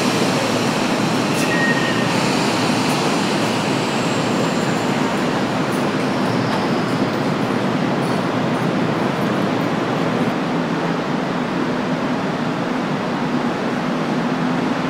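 A train idles with a steady electric hum in an echoing underground station.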